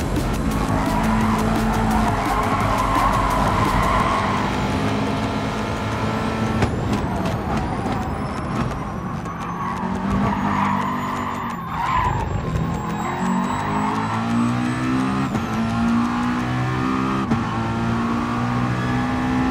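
A racing car engine roars loudly, revving up and down through gear changes.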